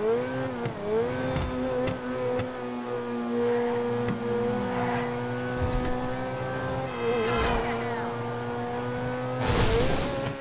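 A sports car engine roars steadily, its pitch dipping briefly as it shifts gears.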